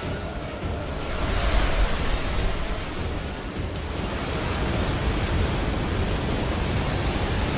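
A deep magical rush swells and roars.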